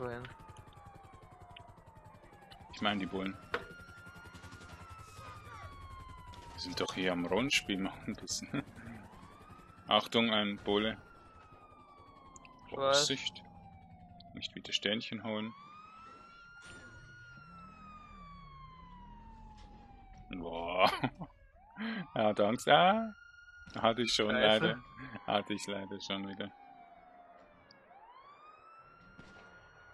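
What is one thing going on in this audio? Police sirens wail up and down nearby.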